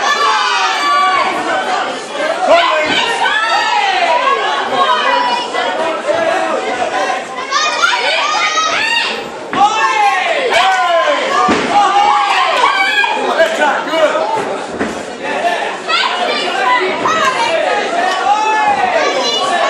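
A crowd of people cheers and shouts loudly in an echoing hall.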